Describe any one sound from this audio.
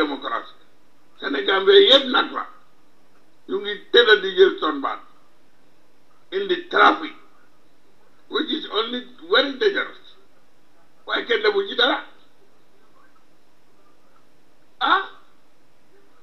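An older man speaks into a microphone in short phrases with pauses.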